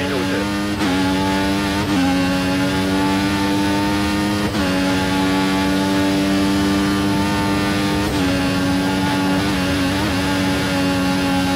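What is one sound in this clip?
A racing car engine screams at high revs, dropping briefly with each gear change.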